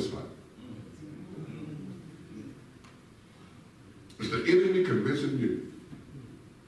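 A man speaks through a microphone in a large echoing room, in short phrases with pauses.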